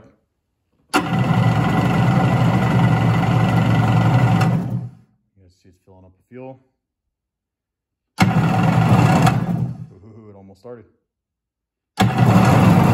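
A small engine starts and revs loudly in short bursts, then cuts out.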